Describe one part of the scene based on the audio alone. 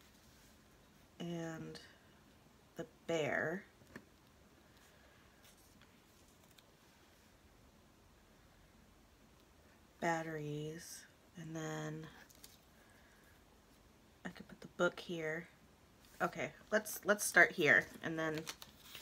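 Paper rustles and crinkles softly under hands.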